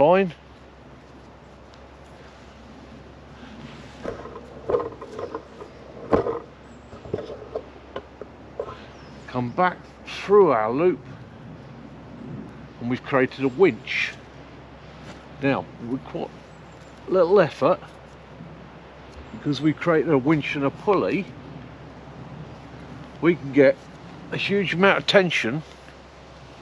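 A middle-aged man talks calmly close by, pausing often.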